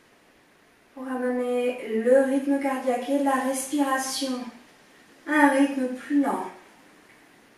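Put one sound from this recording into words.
A woman speaks slowly and calmly, close by.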